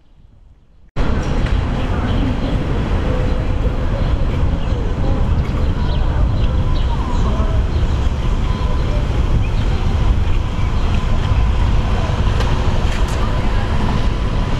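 Wind blows hard outdoors, rustling through trees.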